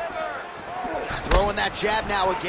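A punch or kick lands with a dull thud.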